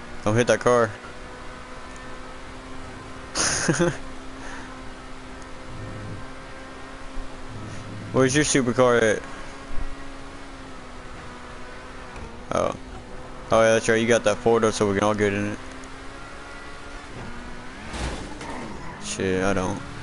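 A sports car engine hums steadily.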